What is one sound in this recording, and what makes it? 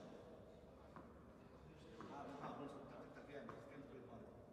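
A tennis ball bounces a few times on a hard court.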